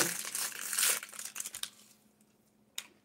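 A young woman crunches on a snack.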